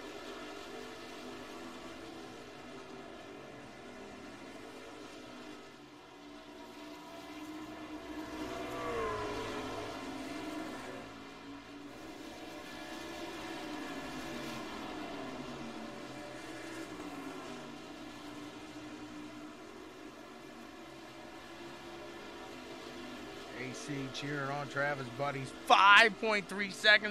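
Racing truck engines drone steadily and rise and fall in pitch as the trucks pass.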